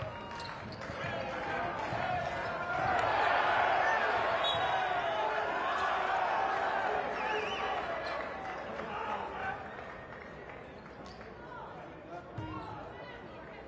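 A large crowd cheers and shouts in an echoing arena, swelling loudly and then fading.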